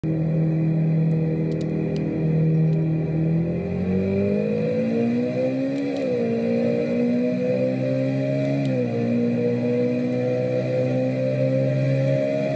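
A car engine hums and rises in pitch as it speeds up, dropping briefly at each gear change.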